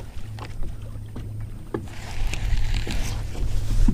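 A baitcasting reel whirs as line is reeled in.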